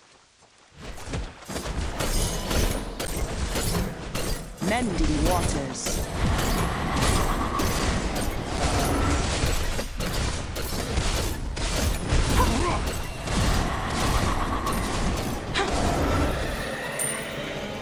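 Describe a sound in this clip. Game combat effects clash and burst in quick succession.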